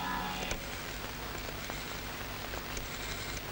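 A man dials a rotary telephone with soft clicks.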